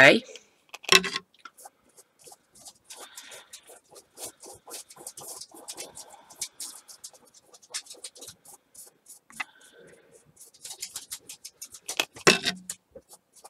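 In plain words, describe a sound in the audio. A paintbrush taps and scrapes against a plastic palette.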